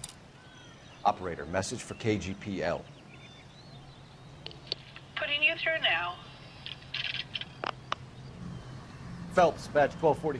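A man speaks into a telephone in a calm, clipped voice.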